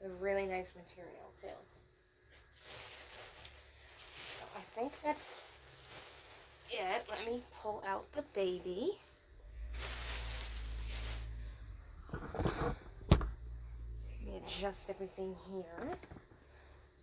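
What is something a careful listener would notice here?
Fabric rustles and crinkles as it is folded and wrapped.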